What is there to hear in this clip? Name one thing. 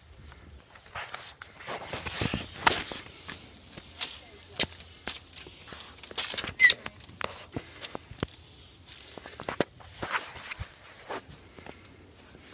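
Fabric rustles and rubs against a phone microphone.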